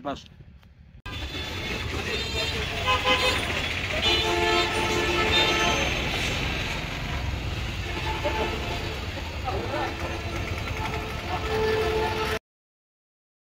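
Motor rickshaws and traffic rumble along a busy street.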